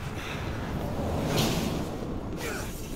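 Something shatters with a loud crash.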